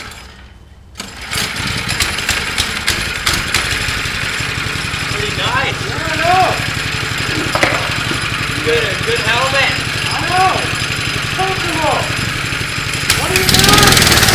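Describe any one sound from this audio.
A small engine on a go-kart starts and runs with a buzzing drone.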